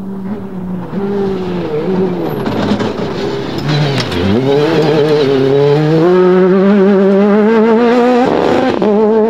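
Tyres crunch and skid on loose dirt.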